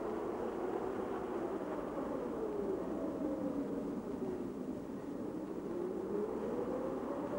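Small waves lap gently on open water.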